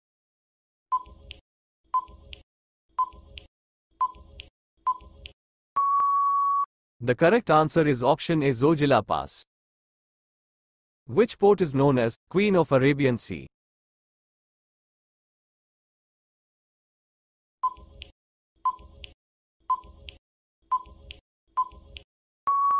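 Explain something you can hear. A countdown timer beeps once a second.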